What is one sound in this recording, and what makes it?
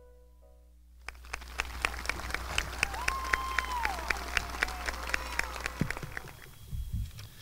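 A crowd applauds and cheers outdoors.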